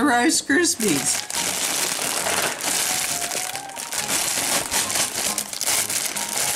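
A plastic bag crinkles and rustles as it is handled.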